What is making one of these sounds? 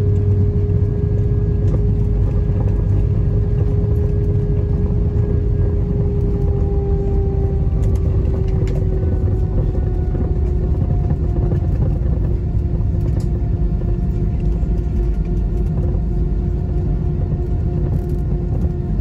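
Jet engines hum and whine steadily as an airliner taxis.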